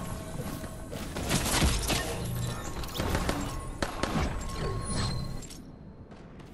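A pickaxe swings and strikes with sharp whooshes and clacks.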